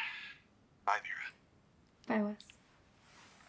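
A young woman talks cheerfully into a phone.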